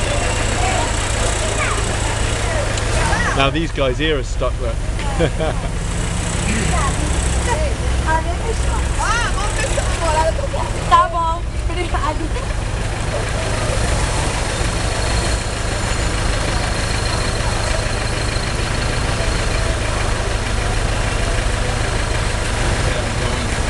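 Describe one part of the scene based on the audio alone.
A vehicle engine rumbles steadily up close.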